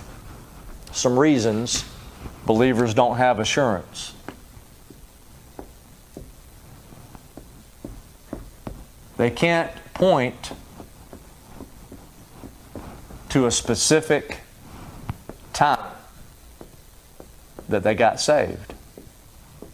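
A man speaks in short bursts, heard through a microphone in a room.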